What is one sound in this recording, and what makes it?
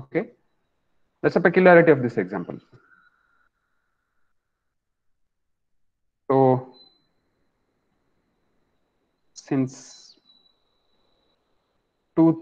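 A young man speaks calmly in short bursts over an online call, with pauses between them.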